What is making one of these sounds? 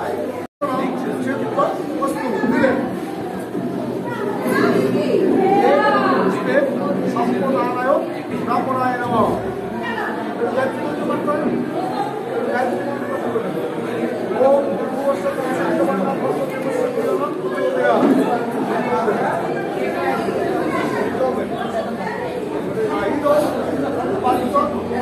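Several people talk and murmur in the background.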